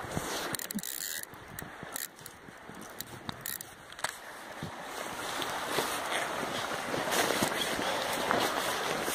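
Handling noise crackles and bumps close by.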